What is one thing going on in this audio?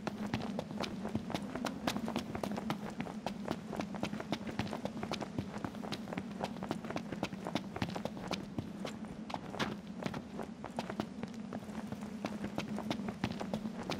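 Quick footsteps crunch on gravel and rough ground.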